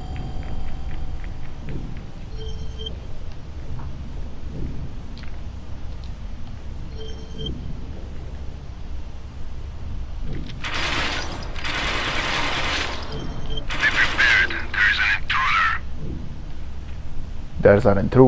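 Soft footsteps pad across a hard floor.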